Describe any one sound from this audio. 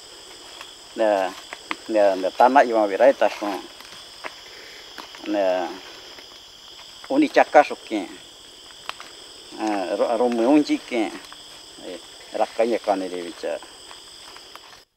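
An elderly man speaks calmly and steadily.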